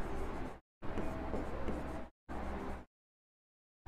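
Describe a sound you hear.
A marker scratches on a whiteboard.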